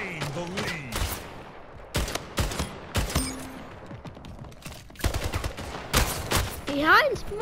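Single heavy shots crack out.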